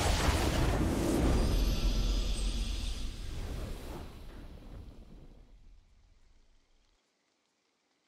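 A triumphant game fanfare swells and slowly fades away.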